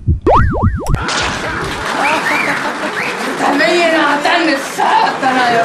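A young man shouts in surprise close by.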